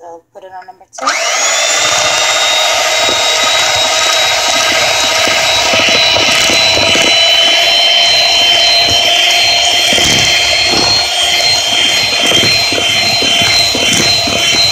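A hair dryer switches on and blows with a steady, loud whine.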